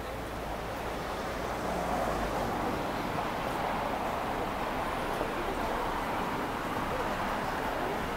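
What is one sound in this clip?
A car drives along a street in the distance.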